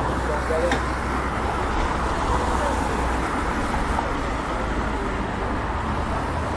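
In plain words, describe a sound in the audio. A busy city street hums outdoors.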